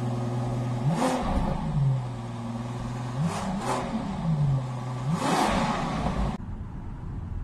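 A car engine idles and revs up sharply several times.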